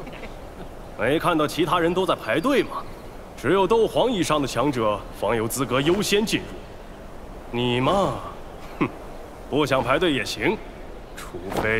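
A man speaks firmly in a deep voice.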